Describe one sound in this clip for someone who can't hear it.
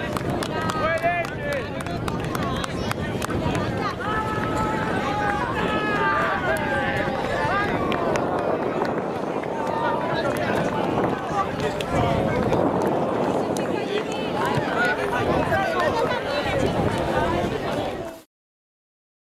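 A crowd of young players and spectators chatters and calls out outdoors.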